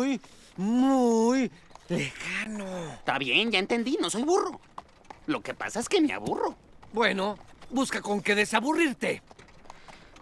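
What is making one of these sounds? A man speaks with animation in a deep, playful voice.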